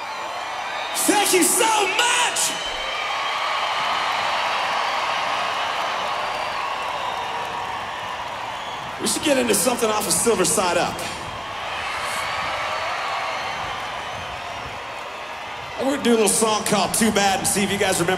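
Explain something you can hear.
People in a crowd shout and whoop loudly.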